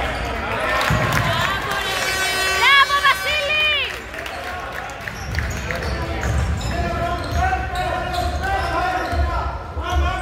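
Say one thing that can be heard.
Spectators and players shout and call out in an echoing hall.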